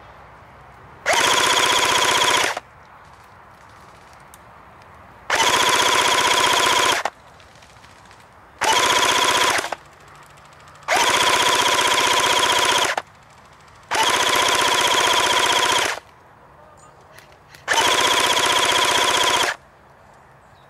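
An airsoft rifle fires in bursts.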